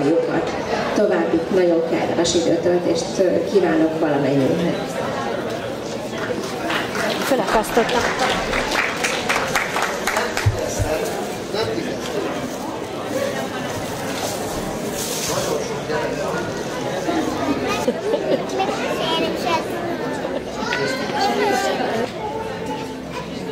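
A woman speaks into a microphone over loudspeakers.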